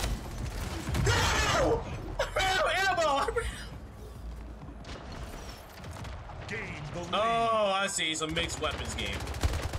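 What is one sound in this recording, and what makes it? A young man exclaims with animation, close to a microphone.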